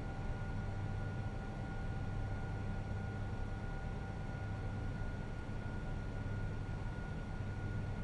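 A steady low engine drone hums inside an aircraft cockpit.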